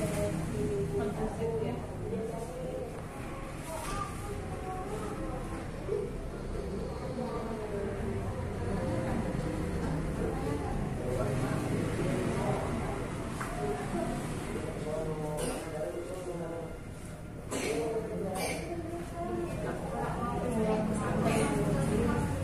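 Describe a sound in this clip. Adults talk quietly nearby in a room.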